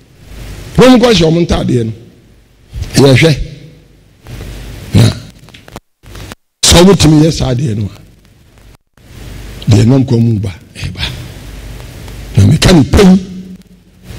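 An elderly man speaks with animation into a microphone, in short bursts with pauses.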